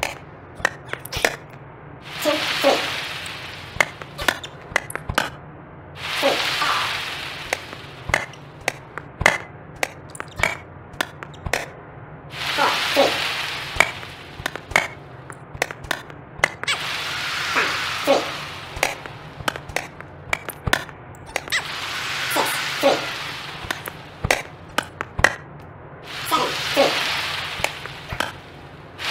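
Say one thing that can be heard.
A tennis racket hits a ball again and again with sharp pops.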